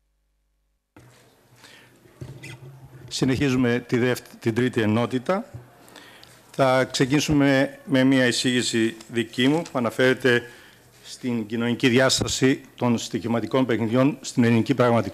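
An elderly man speaks steadily through a microphone in a large room.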